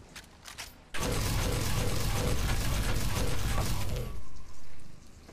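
An energy shield hums loudly and crackles.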